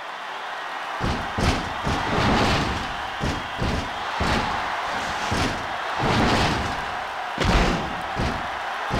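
Bodies slam onto a ring mat with heavy thuds.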